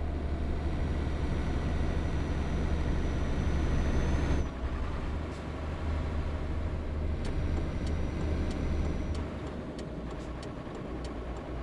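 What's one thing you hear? Tyres roll on a road with a steady rush.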